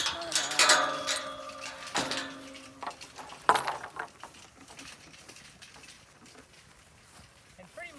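A garden cart rattles as it rolls over grass.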